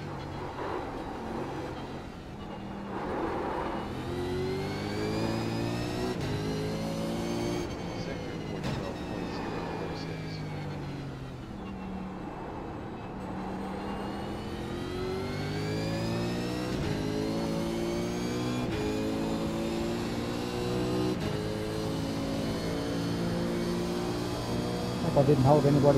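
A race car engine revs hard, climbing in pitch and dropping with each gear change.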